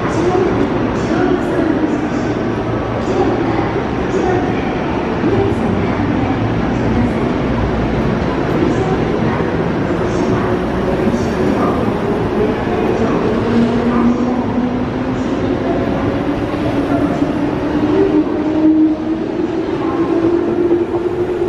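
A train rumbles into the station and slowly rolls past.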